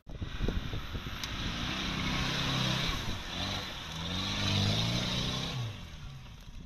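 Mud splashes and churns under spinning tyres.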